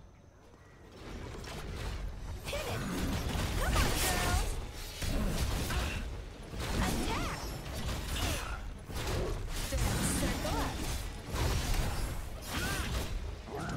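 Heavy blows, crashes and magical blasts sound loudly during a fight with a monster.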